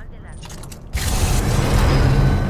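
A crackling energy weapon fires with a loud electric roar.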